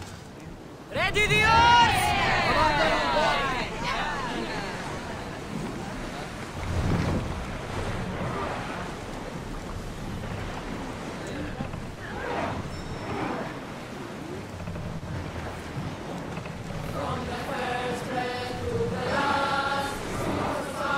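Water splashes against a moving wooden ship.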